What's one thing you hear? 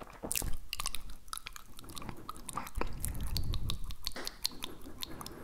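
A man whispers very close to a microphone.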